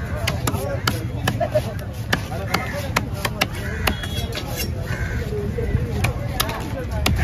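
A heavy knife chops sharply and repeatedly on a wooden block.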